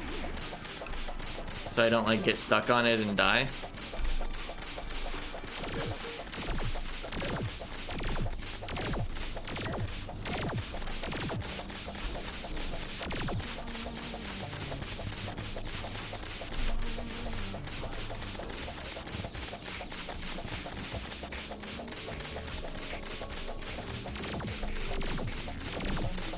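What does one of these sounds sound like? Game music plays throughout.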